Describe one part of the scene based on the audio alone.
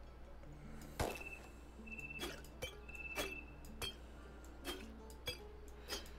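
Short soft clicks and chimes sound as items are moved.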